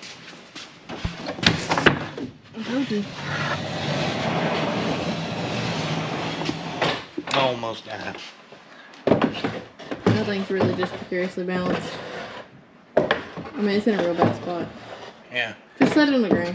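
A wooden panel knocks and scrapes against a wall.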